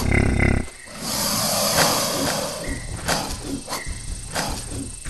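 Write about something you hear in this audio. A large animal snorts and bellows loudly.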